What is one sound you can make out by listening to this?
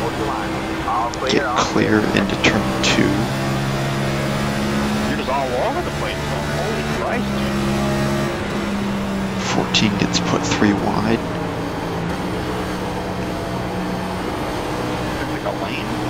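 A race car engine drones steadily at high revs.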